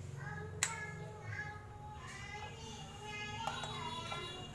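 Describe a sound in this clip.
Metal parts clink softly as a wheel hub is handled.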